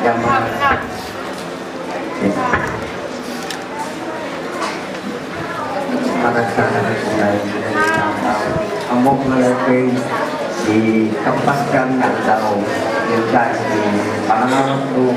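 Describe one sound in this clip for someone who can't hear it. An older man speaks steadily through a microphone and loudspeaker.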